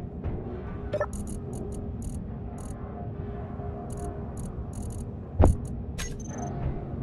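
Menu clicks tick in quick succession.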